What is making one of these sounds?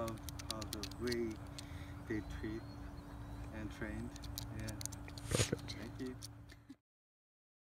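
A man talks calmly outdoors.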